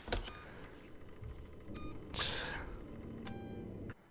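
A button clicks on a wall phone panel.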